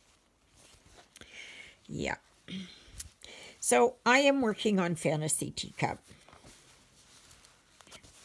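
A sheet of stiff paper rustles and crinkles as hands handle it.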